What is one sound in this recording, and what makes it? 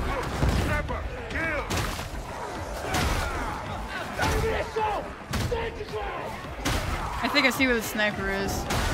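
Gunfire and blasts crackle in rapid bursts.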